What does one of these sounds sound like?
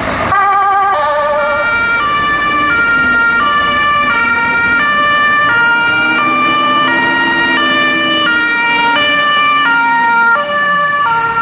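A fire engine siren wails loudly in a steady two-tone pattern close by.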